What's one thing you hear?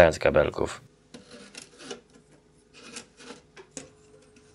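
A dial clicks as it is turned.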